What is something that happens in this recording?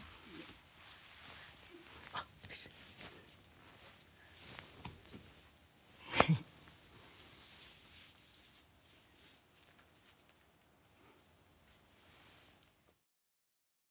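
A young woman laughs and chats playfully close to a microphone.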